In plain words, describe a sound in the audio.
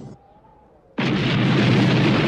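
An explosion booms with a loud roar.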